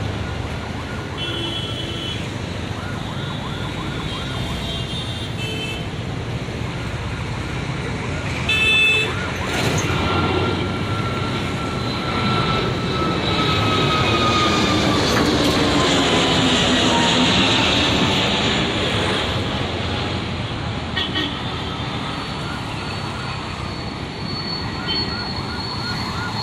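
A jet airliner roars overhead as it climbs, its engine whine slowly falling in pitch and fading.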